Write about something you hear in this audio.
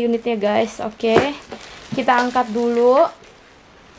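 Plastic wrap crinkles as a hand handles it.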